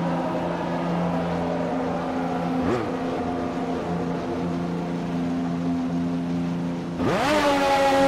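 A racing car engine idles with a steady buzzing hum.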